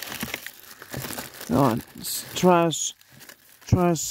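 Paper rustles and crinkles as a hand handles it.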